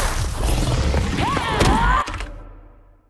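A magical energy blast roars and whooshes loudly.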